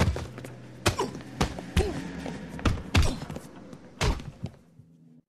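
Blows thud against a man lying on the ground.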